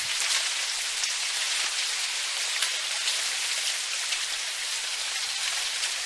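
Footsteps crunch softly on dry leaves.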